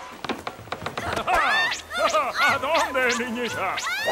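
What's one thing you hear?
A young girl grunts with effort.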